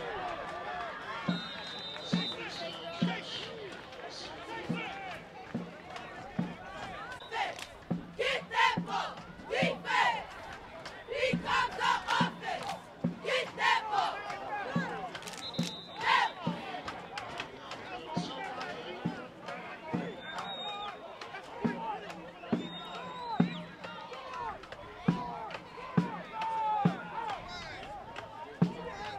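Young women chant loudly in unison.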